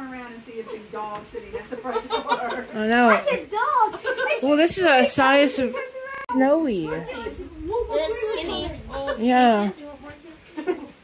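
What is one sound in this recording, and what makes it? Women talk and laugh with animation close by.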